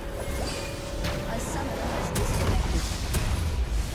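Magic blasts and impacts crackle and boom in quick bursts.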